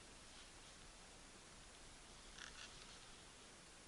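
Netting rustles as it brushes past.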